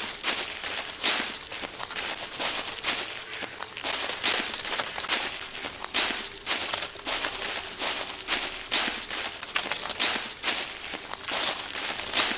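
Footsteps crunch quickly through dry leaves.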